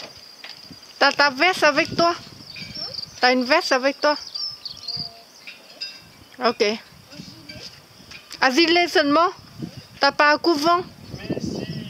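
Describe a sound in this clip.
A young child calls out in a high voice outdoors.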